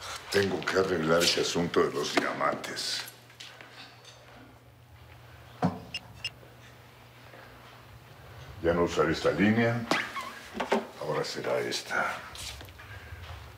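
An elderly man speaks calmly to himself, close by.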